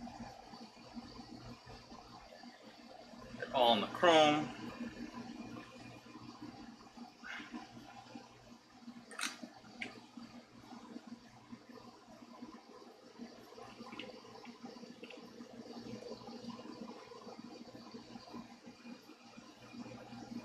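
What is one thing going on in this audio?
A cloth rubs softly over a guitar's body.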